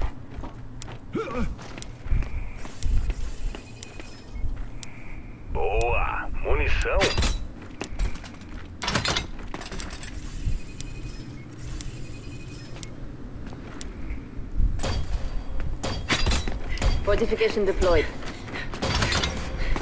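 Metal barricades clank into place.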